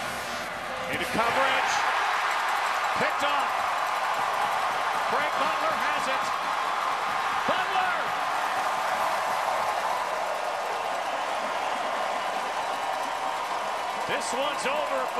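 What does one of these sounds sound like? A large stadium crowd cheers and roars loudly.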